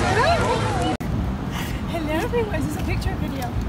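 A young woman talks casually as she walks.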